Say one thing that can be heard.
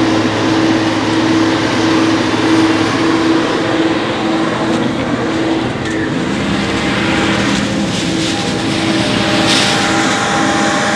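A combine harvester engine drones loudly and steadily nearby.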